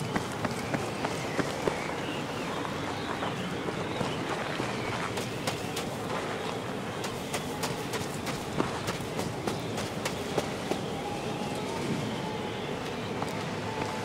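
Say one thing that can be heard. Footsteps crunch on snow at a steady pace.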